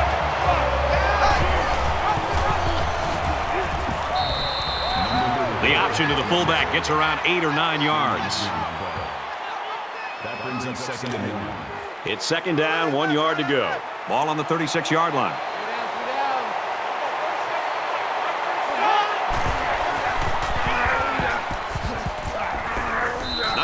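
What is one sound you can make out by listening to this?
A stadium crowd roars steadily in the background.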